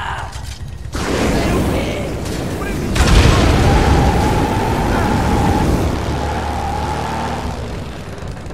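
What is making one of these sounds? A flamethrower roars with a rushing blast of fire.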